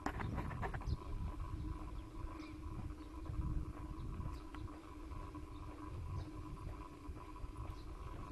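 Tyres roll over a paved path.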